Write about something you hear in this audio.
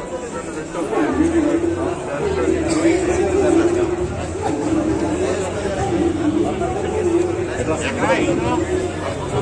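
A man speaks up close over the crowd.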